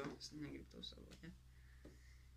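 A pen clicks and rattles in a person's hands.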